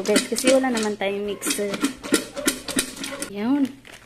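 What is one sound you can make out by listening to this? Popcorn rattles inside a covered metal pot as it is shaken.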